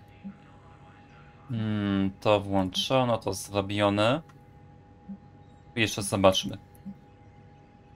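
Short soft interface blips sound as menu items are selected.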